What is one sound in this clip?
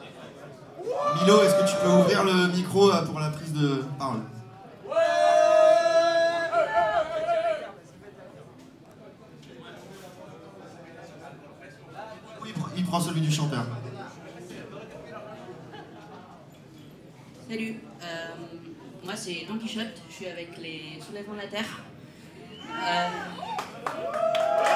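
A man shouts loudly to the crowd.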